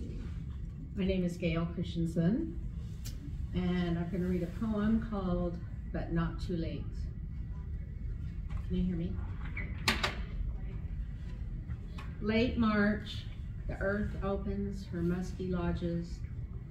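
An elderly woman speaks calmly into a microphone, heard through a loudspeaker in a large echoing hall.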